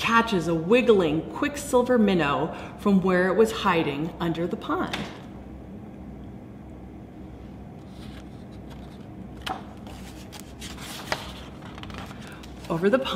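A middle-aged woman reads aloud expressively, close by.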